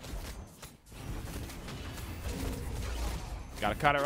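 Magic blasts and whooshes sound in a fast game battle.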